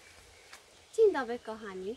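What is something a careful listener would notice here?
A young girl speaks brightly and close by.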